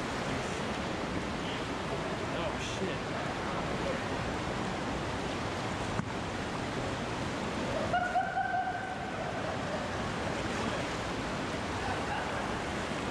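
Water rushes and churns loudly over rocks.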